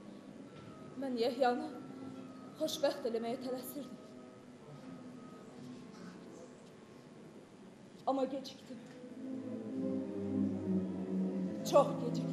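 A young woman speaks with emotion in a large echoing hall.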